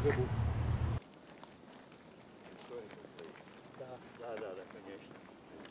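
Men talk quietly among themselves outdoors.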